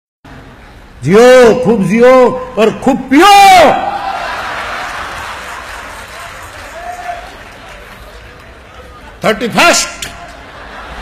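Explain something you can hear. An elderly man sings out loudly and with passion through a microphone, heard in a large echoing space.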